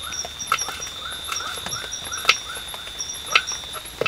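A knife taps as it cuts small chillies on a wooden board.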